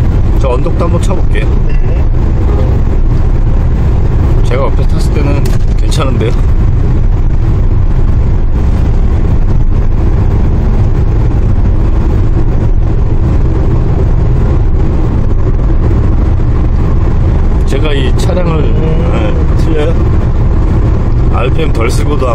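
A vehicle engine hums steadily from inside the cab while driving.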